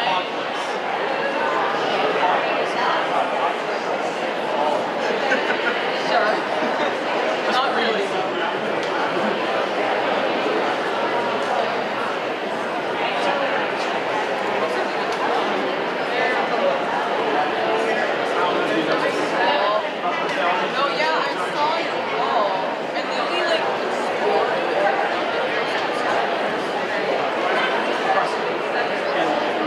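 A large audience chatters and murmurs in an echoing hall.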